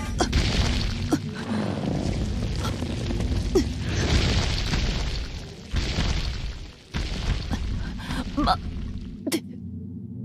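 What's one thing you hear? A large creature roars and thrashes.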